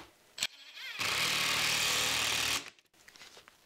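A cordless drill whirs as it drives a screw into wood.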